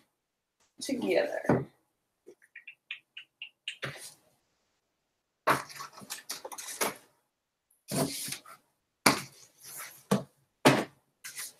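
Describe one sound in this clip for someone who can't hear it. Books knock and slide onto a wooden shelf close by.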